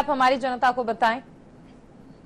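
A woman speaks clearly into a microphone.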